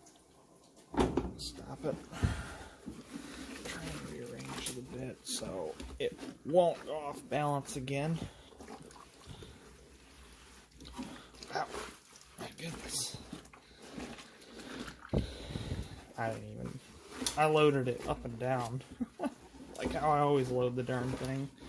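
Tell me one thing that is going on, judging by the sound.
Wet clothes slosh and rustle as a hand moves them through water.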